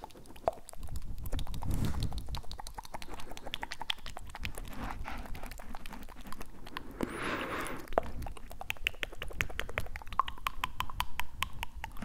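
A young man makes wet mouth clicks right against a microphone.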